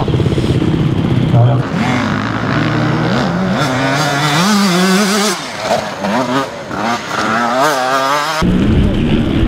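A motorcycle engine revs and whines up and down close by.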